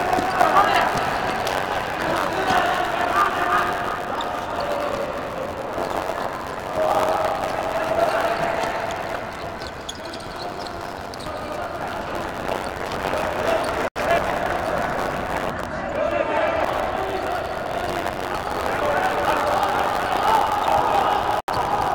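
A ball is kicked across a hard indoor court, echoing in a large hall.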